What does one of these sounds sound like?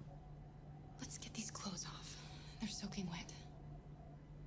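A woman speaks softly and gently.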